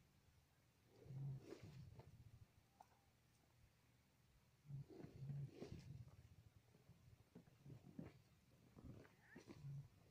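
An armadillo roots and scrabbles in loose soil.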